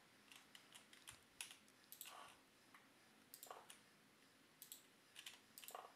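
Game blocks clack sharply as rails are placed, in quick irregular clicks.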